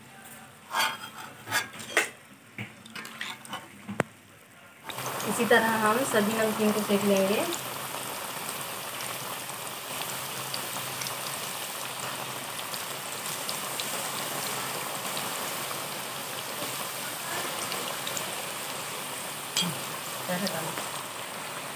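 A metal spoon scrapes against a pan.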